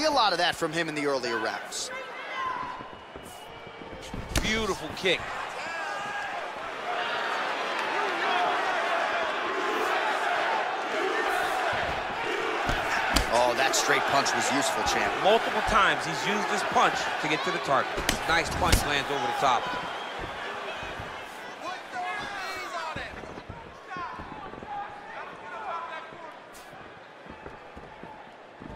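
A crowd roars and cheers in a large arena.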